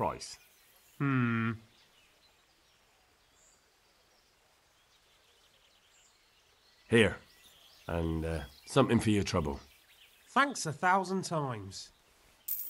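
An older man answers briefly.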